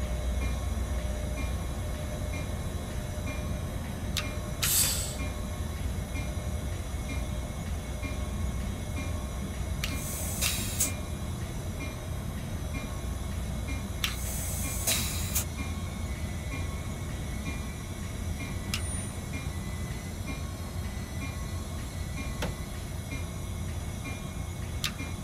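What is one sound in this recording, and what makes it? Train wheels click and clatter on the rails.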